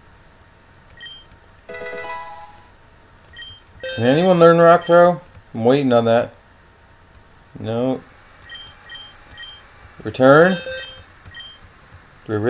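Short electronic beeps sound as a video game menu cursor moves.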